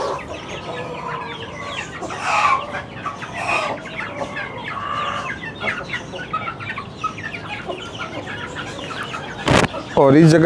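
Chickens cluck and chirp softly.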